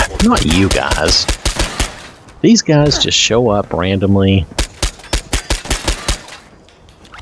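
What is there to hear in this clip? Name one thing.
A submachine gun fires rapid bursts of shots.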